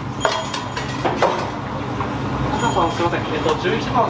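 Ceramic plates clink as they are lifted from a stack.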